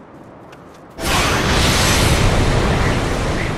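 Wind rushes loudly.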